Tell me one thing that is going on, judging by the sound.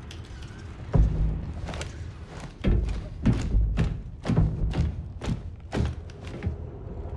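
Boots step on a metal grating.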